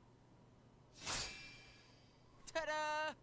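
A magic blast bursts with a whoosh.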